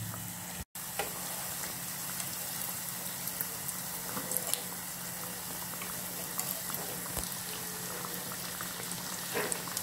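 A metal fork scrapes against a pan.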